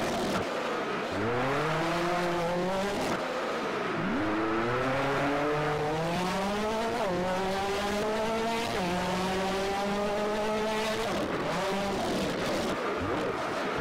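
Tyres screech as a rally car slides through corners.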